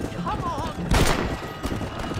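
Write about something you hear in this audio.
A rifle shot cracks.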